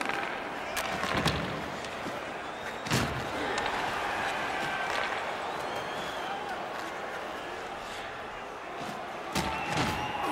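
A large arena crowd murmurs steadily.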